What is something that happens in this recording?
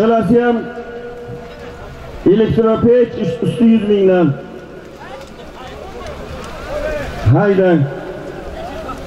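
Many horses trample and scuffle on the ground.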